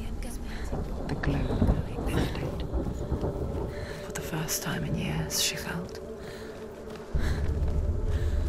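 Footsteps crunch on wet sand and gravel.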